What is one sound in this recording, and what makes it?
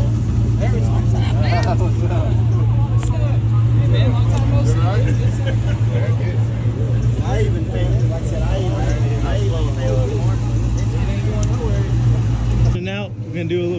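Several men chat in a crowd outdoors.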